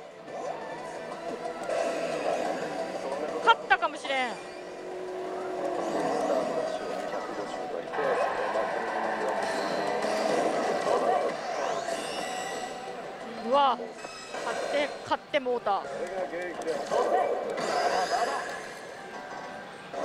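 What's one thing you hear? A slot machine plays loud music and electronic sound effects throughout.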